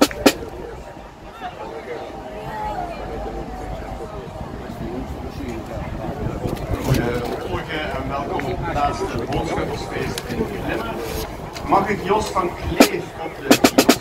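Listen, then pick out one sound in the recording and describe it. A crowd of people chatters outdoors in the background.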